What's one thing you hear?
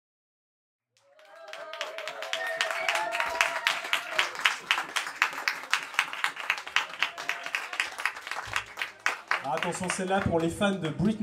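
Acoustic guitars strum a lively rhythm.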